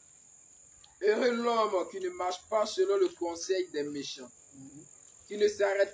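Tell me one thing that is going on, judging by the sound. A young man reads aloud with animation.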